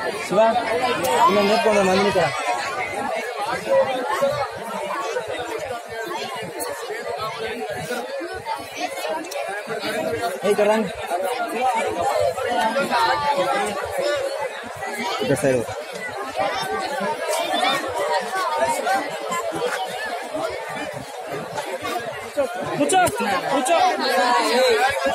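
A large crowd of people chatters and shouts outdoors, close by.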